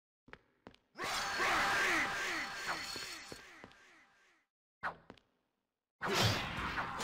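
Fists thump and strike in a brawl.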